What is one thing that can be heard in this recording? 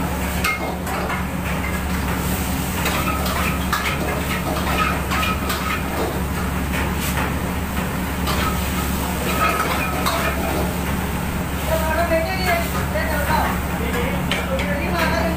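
A metal spatula clatters and scrapes against a wok.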